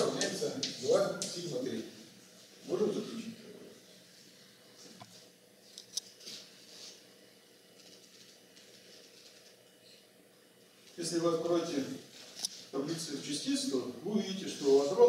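An elderly man speaks calmly, as if lecturing, in an echoing room.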